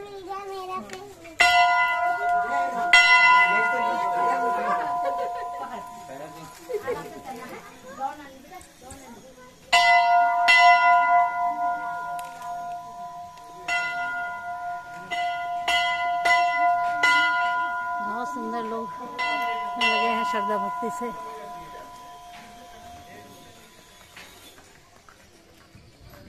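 Men and women talk quietly nearby, outdoors.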